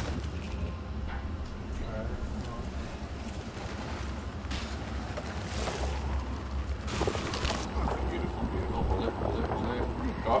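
A sled hisses as it slides fast over snow.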